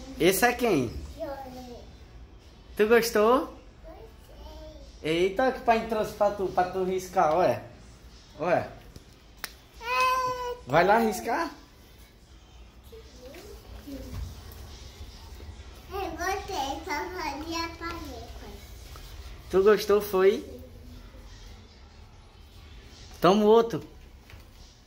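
A toddler girl speaks in short, babbling bursts close by.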